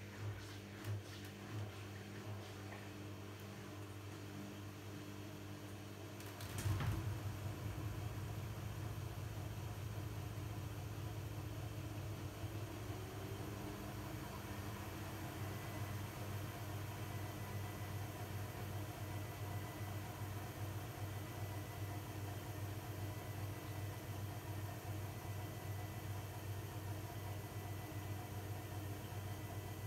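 Laundry tumbles and sloshes inside a washing machine drum.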